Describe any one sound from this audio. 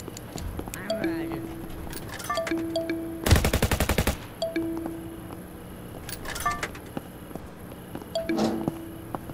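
Short electronic beeps sound several times.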